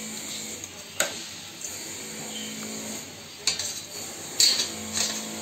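A metal strainer clinks against a metal bowl.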